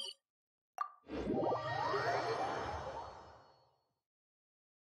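A shimmering magical whoosh swells and slowly fades.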